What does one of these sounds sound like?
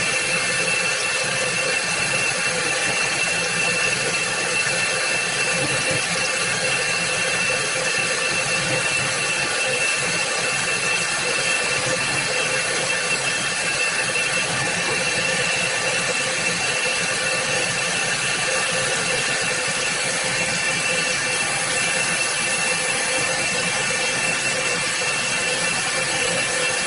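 A milling machine whines steadily as its cutter grinds into metal.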